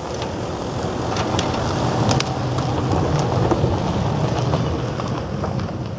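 A hand saw cuts through wood with a steady rasp.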